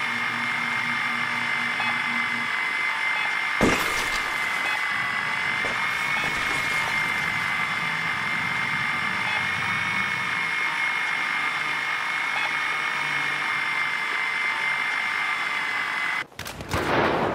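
A small drone's motor whirs steadily.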